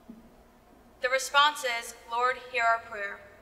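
A young woman speaks calmly into a microphone over loudspeakers.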